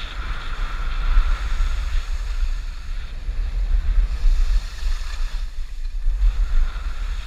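Skis or a snowboard scrape and hiss over packed snow.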